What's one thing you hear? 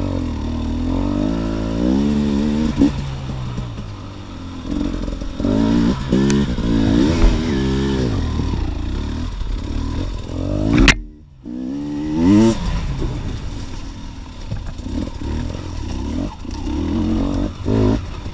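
A dirt bike engine revs up and down, loud and close.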